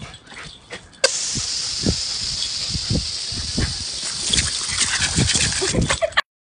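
Water sprays hard from a hose with a steady hiss.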